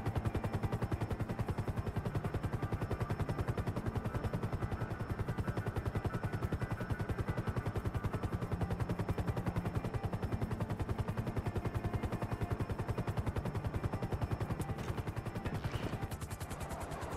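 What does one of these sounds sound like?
A propeller engine drones with a fast, steady throb.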